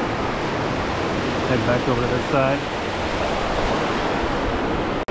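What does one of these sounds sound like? Water rushes and splashes over rocks into a pool close by.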